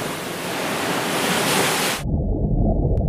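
A wave crashes and splashes against rocks.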